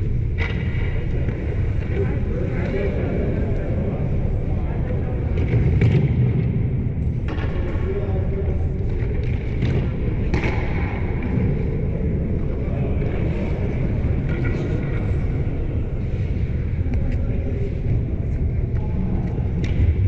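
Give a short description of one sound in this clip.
Ice skates scrape and hiss across an ice rink.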